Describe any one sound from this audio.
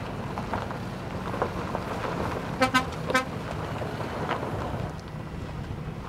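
A heavy truck engine rumbles as lorries drive along a dirt track.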